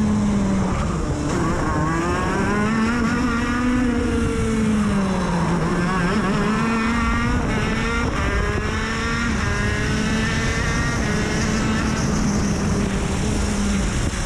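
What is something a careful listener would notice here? A small kart engine buzzes loudly up close, its pitch rising and falling as it speeds up and slows for corners.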